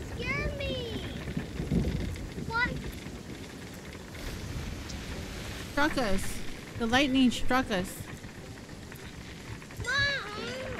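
Waves roll and splash against a wooden boat.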